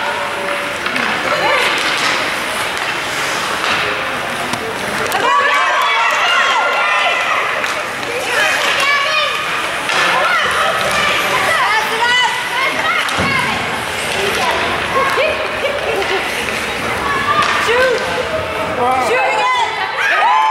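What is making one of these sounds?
Spectators chatter and call out in an echoing rink.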